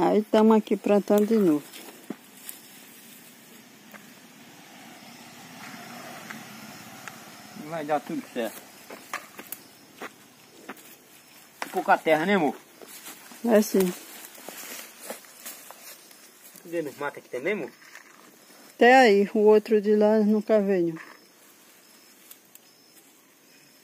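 Dry leaves and stems rustle as a man pulls at plants.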